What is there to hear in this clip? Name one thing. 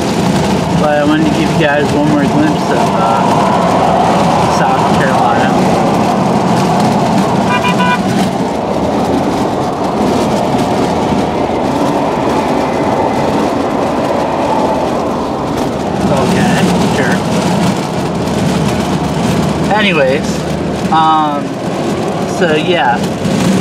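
A car's engine and tyres rumble steadily on a highway, heard from inside.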